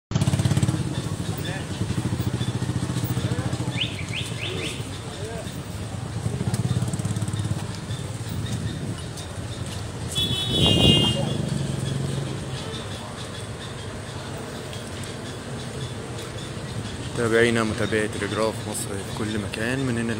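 A crowd of men murmurs and talks nearby outdoors.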